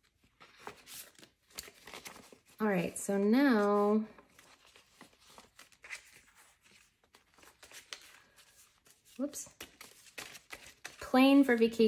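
Paper bills rustle and flick as they are counted.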